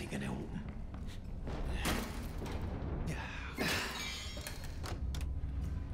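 A locked door rattles as it is tried.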